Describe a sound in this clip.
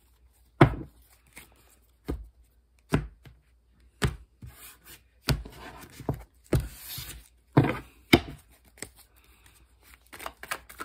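Playing cards are shuffled and riffled by hand.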